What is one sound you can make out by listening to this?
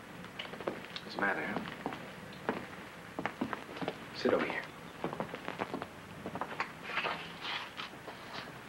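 A man talks quietly.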